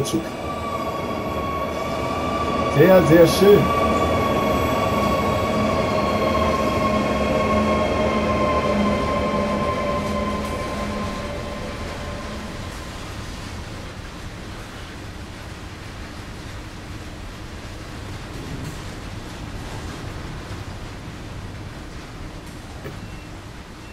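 A train rumbles over the rails.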